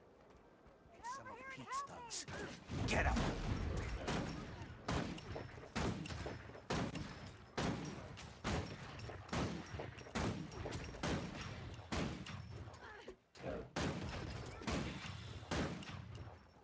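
Weapon strikes and spell effects crack and thud in a fight.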